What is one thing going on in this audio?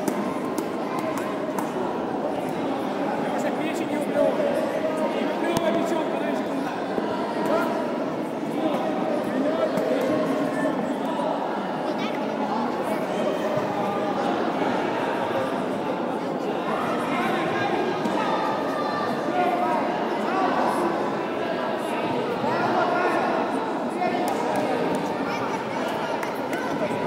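Many people talk at once in a large echoing hall.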